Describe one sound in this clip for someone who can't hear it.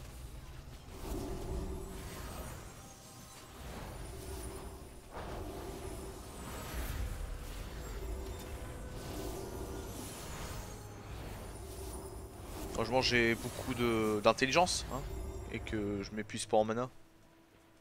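Fighting sounds and magic spell effects from a video game play out.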